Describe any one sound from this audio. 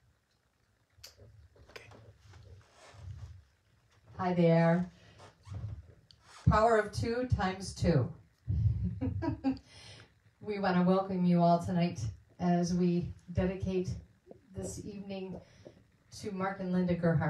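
A woman talks calmly into a headset microphone.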